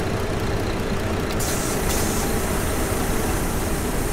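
A bus door opens with a pneumatic hiss.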